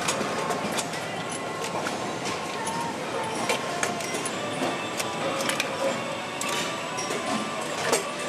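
Metal pistons clink as they are handled on an assembly line.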